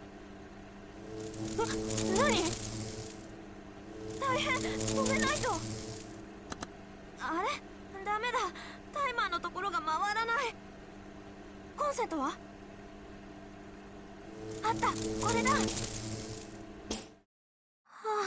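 A microwave oven hums as it runs.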